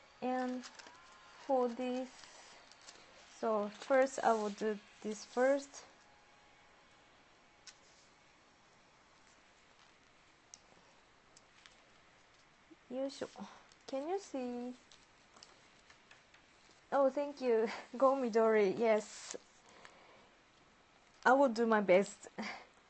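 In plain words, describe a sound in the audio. Paper rustles and creases softly as it is folded.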